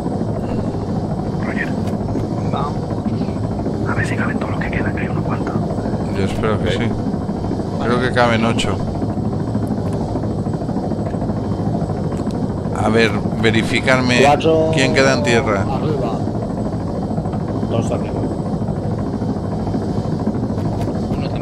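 A helicopter's engine and rotors drone steadily from inside the cabin.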